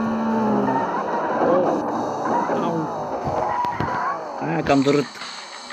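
Tyres screech as a car skids around a corner.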